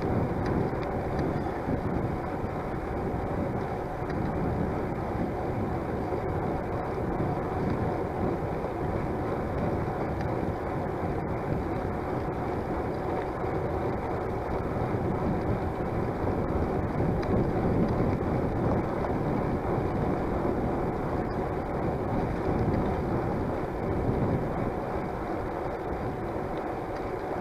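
Bicycle tyres roll steadily on a paved path.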